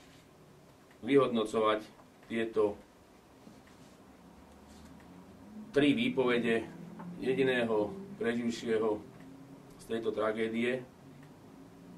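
A middle-aged man speaks calmly and haltingly into a close microphone.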